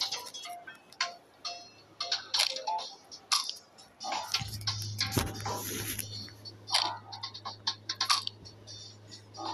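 Cartoon chewing sounds crunch and smack in quick bursts.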